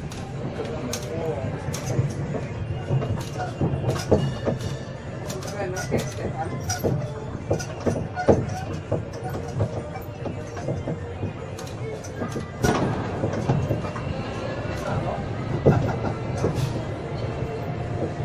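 Wheels clatter and knock over the road.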